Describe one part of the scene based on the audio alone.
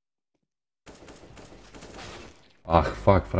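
A rifle fires a quick burst.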